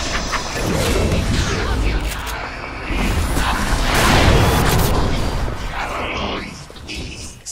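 Magic spells burst and crackle in a loud video game battle.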